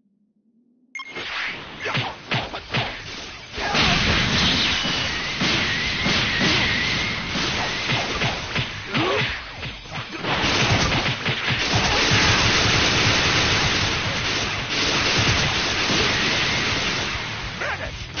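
Blows thud and crack as fighters clash.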